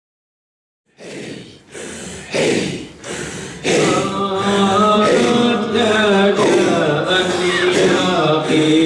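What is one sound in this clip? A group of men chant together loudly in a steady rhythm.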